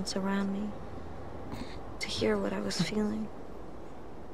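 A young person speaks quietly and sadly, close by.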